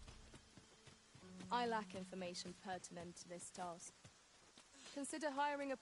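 Footsteps run quickly over rocky ground.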